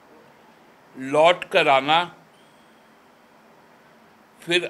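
A middle-aged man speaks calmly into microphones.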